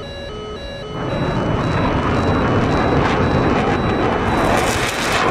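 A fighter jet roars loudly as it flies past.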